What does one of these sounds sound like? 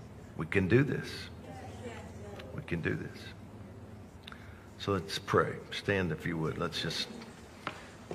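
A middle-aged man speaks calmly and earnestly into a nearby microphone.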